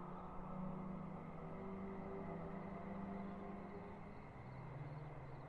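A car engine drones steadily in the distance.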